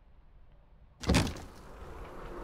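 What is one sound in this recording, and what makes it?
A heavy wooden coffin lid thuds open.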